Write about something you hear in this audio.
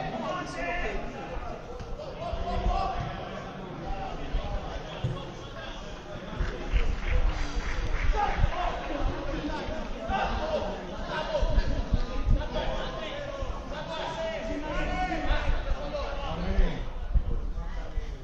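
Men shout and call out across an open outdoor pitch.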